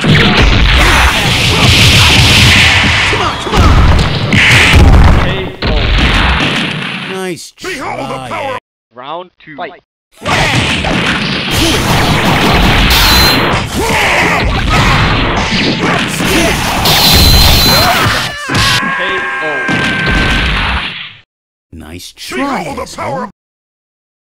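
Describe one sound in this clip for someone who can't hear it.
Loud fighting game hits, blasts and whooshes crash in quick bursts.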